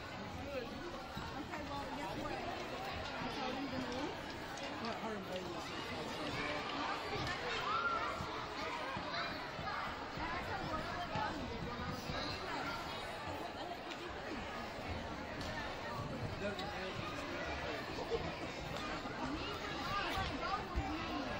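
A crowd of many voices chatters in a large echoing hall.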